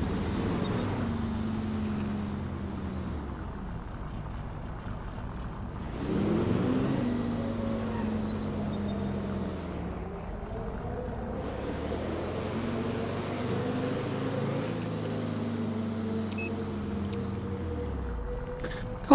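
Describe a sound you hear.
Tyres swish on the road.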